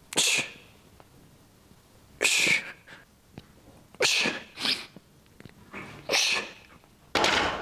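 A man exhales sharply with each lift.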